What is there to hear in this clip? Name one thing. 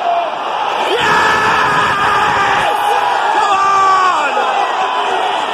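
A stadium crowd roars and cheers in a loud burst.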